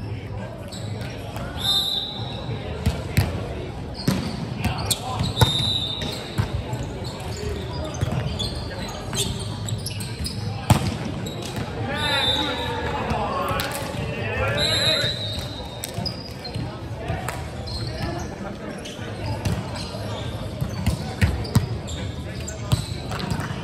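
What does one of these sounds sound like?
A volleyball is struck with sharp slaps that echo through a large hall.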